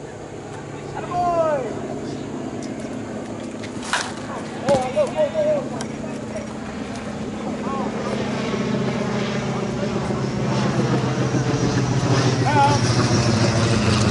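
Men shout and cheer nearby, outdoors.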